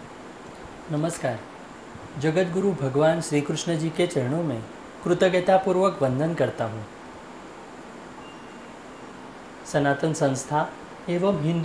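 A man speaks calmly and clearly through a close microphone.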